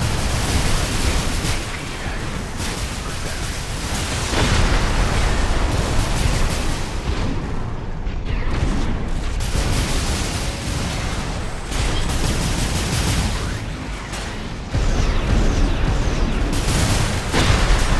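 Electric bursts crackle and sizzle.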